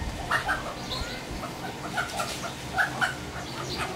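A chicken flaps its wings in a flurry.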